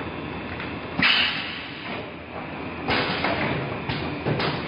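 Air hisses in sharp bursts from a packaging machine.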